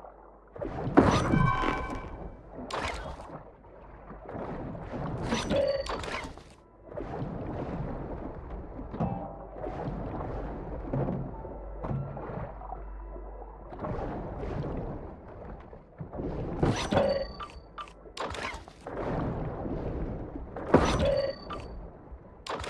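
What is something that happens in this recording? Short chiming clicks sound as items are picked up.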